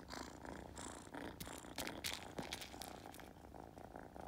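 A feather toy rustles as a kitten bites and paws at it.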